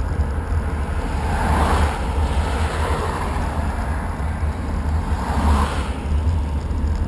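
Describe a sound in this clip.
Cars rush past close by, one after another.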